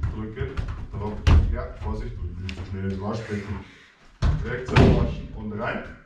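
A football is kicked and bounces off a wall.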